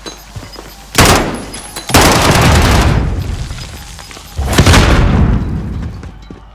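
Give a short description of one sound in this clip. Rifle shots ring out in loud bursts.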